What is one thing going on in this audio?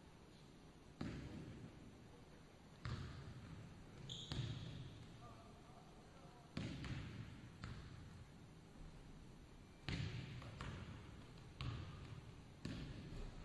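Basketballs bounce on a hard floor, echoing through a large hall.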